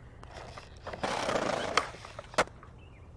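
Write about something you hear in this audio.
Skateboard wheels roll and grind on concrete.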